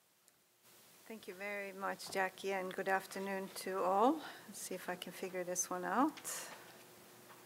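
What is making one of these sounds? An elderly woman speaks calmly through a microphone.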